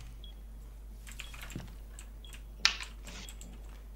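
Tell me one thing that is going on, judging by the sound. A gun is reloaded with sharp metallic clicks.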